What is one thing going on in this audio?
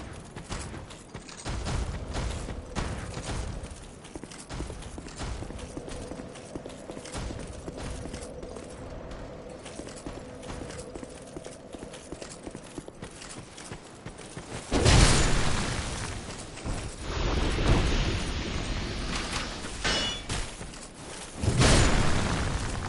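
Armoured footsteps crunch over dry leaves and stone.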